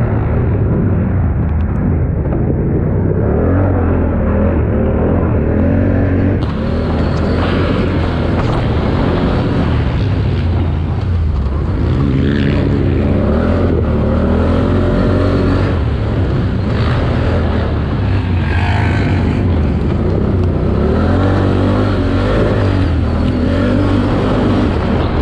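A quad bike engine roars loudly up close and revs up and down.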